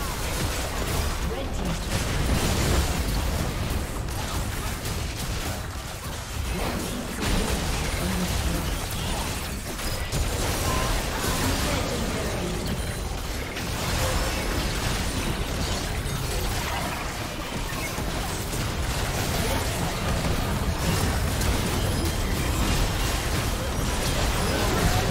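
Magic spells whoosh, crackle and boom in a busy fight.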